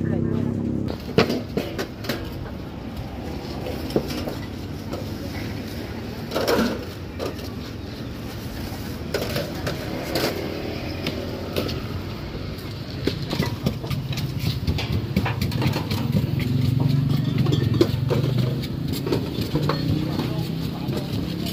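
Stainless steel trays clatter as they are stacked and set down on a metal counter.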